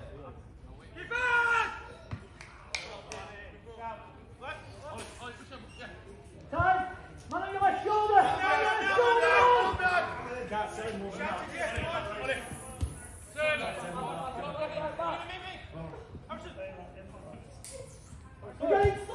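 Men shout to each other across an outdoor football pitch.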